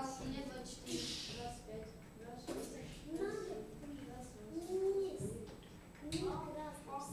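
Children and adults chatter in a room with some echo.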